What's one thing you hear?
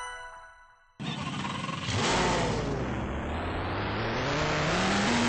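A car engine idles and revs up again.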